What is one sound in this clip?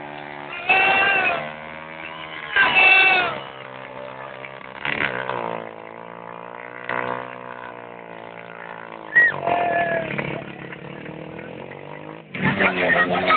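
A motorcycle engine runs steadily and revs up now and then.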